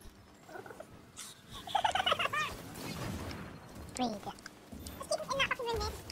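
Blasts and explosions boom nearby.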